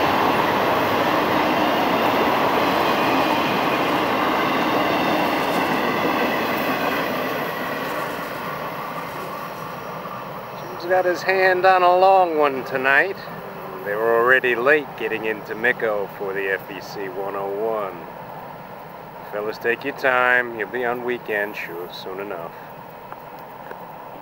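A freight train's wheels rumble on the rails as it rolls past, then fade into the distance.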